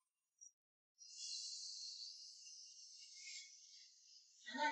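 Food sizzles softly in a hot wok.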